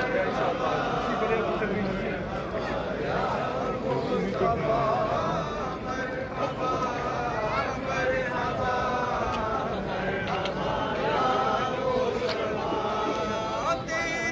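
A large crowd of men and boys talks and calls out outdoors while marching.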